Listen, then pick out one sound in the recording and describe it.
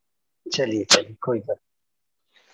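A middle-aged man speaks through an online call.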